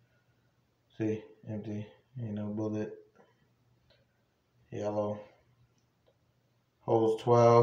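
A young man speaks calmly and close by in short phrases.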